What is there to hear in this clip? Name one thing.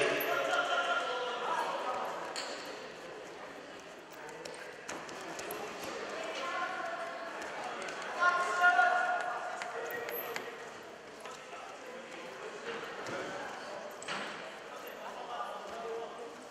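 Feet scuff and thump on a padded mat.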